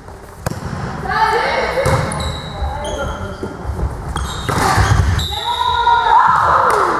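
A volleyball is struck by hand.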